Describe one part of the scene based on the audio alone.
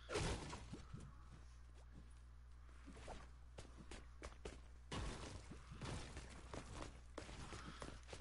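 Video game sound effects click and thud in quick bursts.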